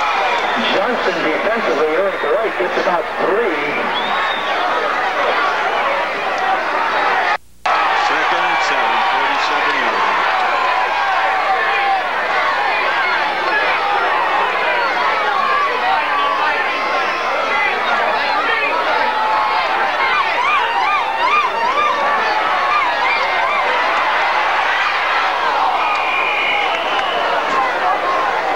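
A large outdoor crowd cheers and chatters steadily.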